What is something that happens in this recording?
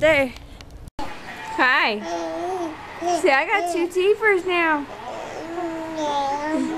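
A baby squeals and babbles with laughter close by.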